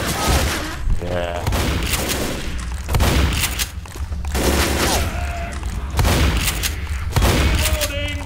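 A shotgun is pumped and reloaded with metallic clacks.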